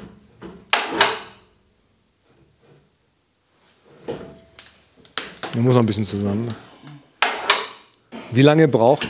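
Metal parts clink and knock as hands work on a machine.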